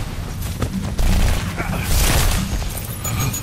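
An explosion bursts with a crackle.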